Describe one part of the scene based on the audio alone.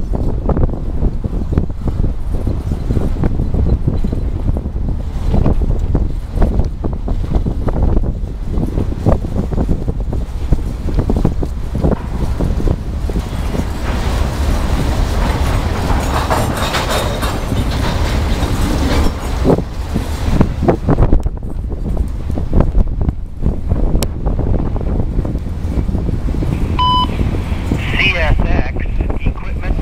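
A long freight train rumbles past close by.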